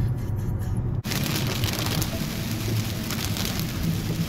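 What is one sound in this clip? Heavy rain drums steadily on a car windshield.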